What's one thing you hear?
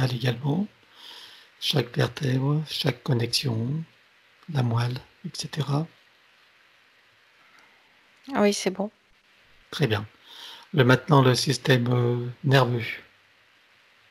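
A middle-aged man speaks calmly and slowly through a headset microphone over an online call.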